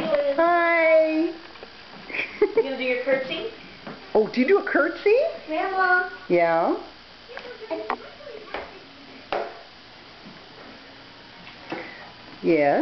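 A young girl talks and squeals in a high voice.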